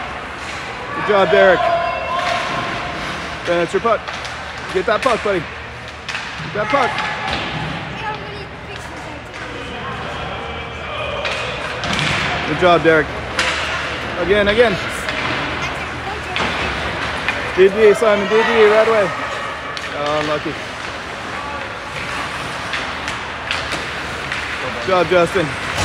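Adult spectators nearby call out and talk loudly, with echoes from a large hall.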